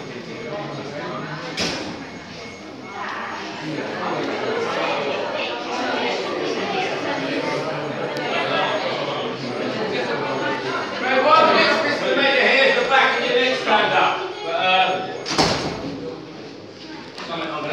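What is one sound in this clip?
A crowd of boys talks and chatters nearby in an echoing corridor.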